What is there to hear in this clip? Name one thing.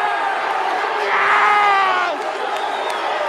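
A man shouts close by.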